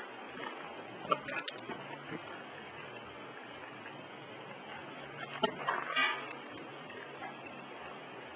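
A puppy gnaws and chews on a toy.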